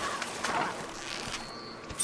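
A bowstring creaks as a bow is drawn.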